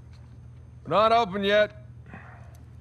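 A man calls out loudly.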